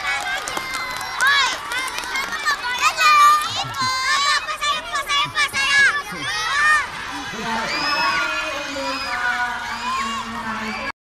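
A crowd of young children shout and cheer excitedly close by, outdoors.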